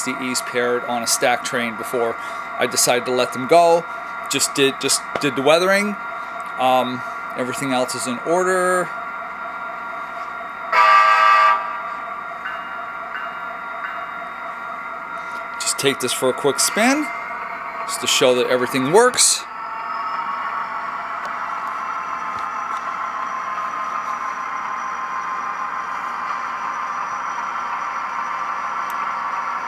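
A model diesel locomotive's engine hums and rumbles steadily.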